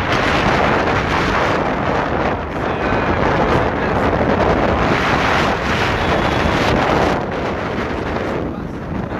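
Wind roars past a microphone on a moving motorcycle.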